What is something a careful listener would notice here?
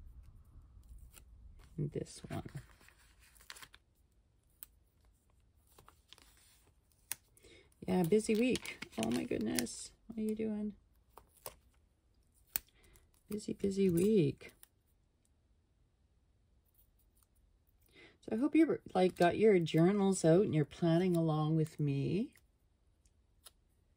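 Paper stickers peel and crinkle softly close by.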